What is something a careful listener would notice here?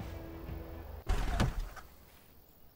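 A car crashes through bushes with a loud thud.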